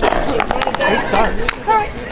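Two players slap hands in a high five.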